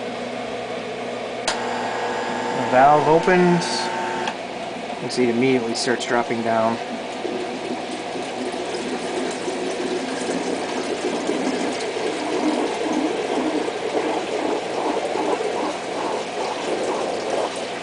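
Water trickles and splashes steadily into a tank.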